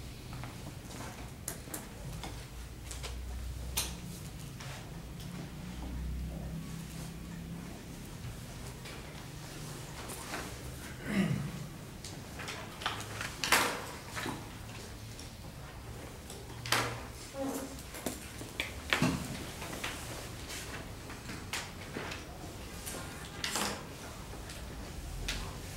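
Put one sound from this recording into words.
A man speaks in a room, at a distance.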